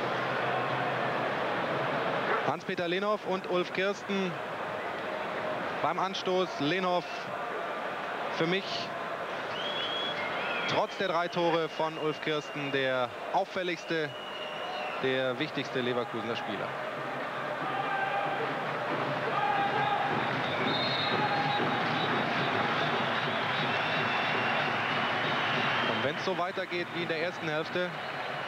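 A stadium crowd murmurs and chants steadily in the distance.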